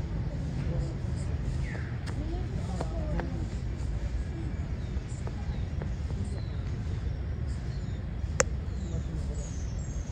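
A small child's footsteps patter softly on a dirt path scattered with dry leaves.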